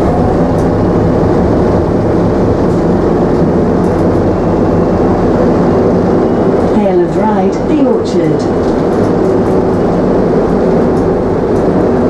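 Loose fittings rattle faintly as a bus drives along.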